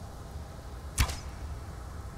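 A bow twangs as an arrow is loosed.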